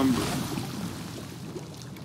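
Water sloshes inside a flooded ship's hold.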